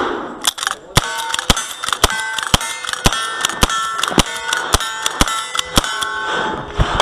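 A pistol fires a fast series of shots.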